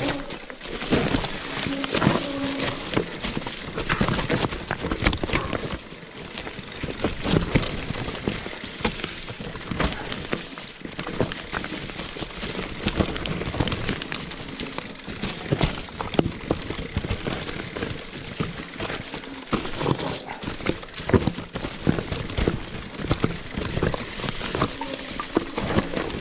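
A bicycle frame clatters and knocks over bumps.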